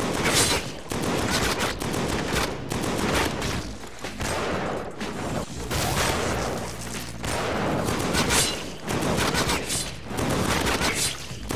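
Video game gunfire blasts rapidly.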